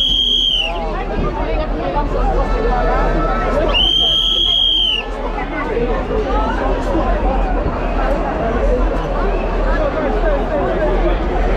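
A large crowd chatters loudly all around, close by.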